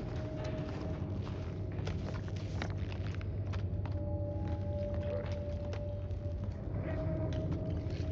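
Paper rustles as a map is unfolded.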